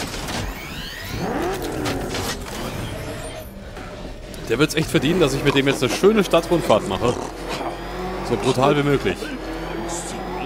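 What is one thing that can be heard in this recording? A heavy vehicle's engine rumbles and roars as it drives.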